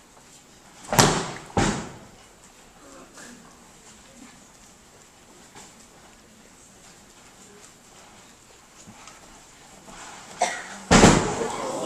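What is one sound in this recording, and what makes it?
Bodies thud heavily onto a mat as people are thrown.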